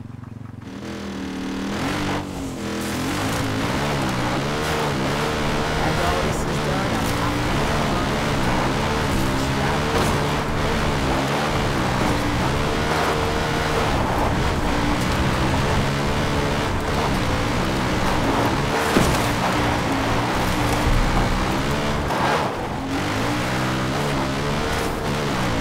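A quad bike engine hums and revs steadily.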